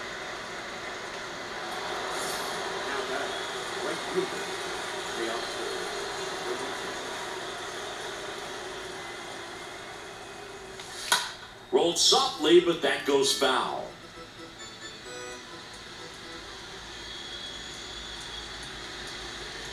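A stadium crowd murmurs steadily through a television speaker.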